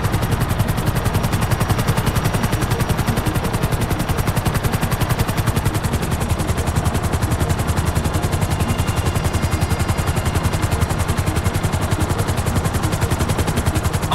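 Helicopter rotor blades chop rapidly and steadily.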